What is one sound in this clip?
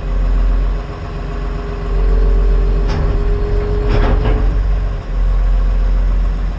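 A diesel engine rumbles loudly close by.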